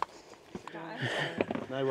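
Boots scuff and step on rock.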